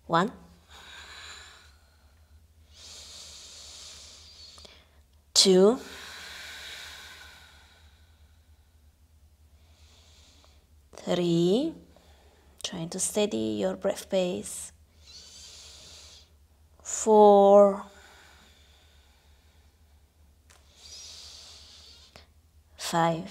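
A woman breathes in and out slowly and deeply.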